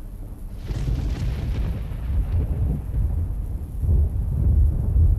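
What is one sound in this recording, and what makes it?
Wind blows in low gusts outdoors.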